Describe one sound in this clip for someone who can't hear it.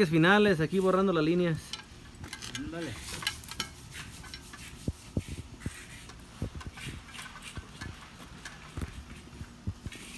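A damp sponge rubs and scuffs over a concrete surface.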